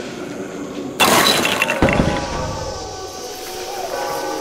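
Bowling pins crash and clatter loudly.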